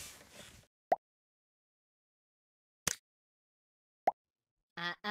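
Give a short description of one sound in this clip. Game interface buttons click.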